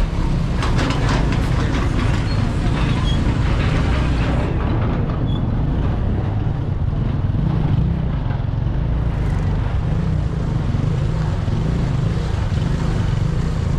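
Traffic murmurs in a busy street.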